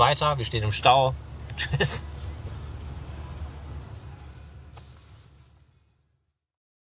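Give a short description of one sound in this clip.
A car engine hums steadily from inside the car and fades away.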